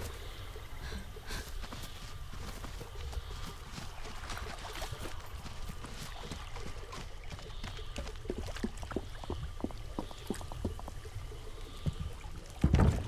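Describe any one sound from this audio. Quick footsteps patter over wooden planks.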